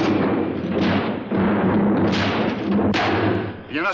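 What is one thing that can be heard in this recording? Metal barrels clang and tumble over.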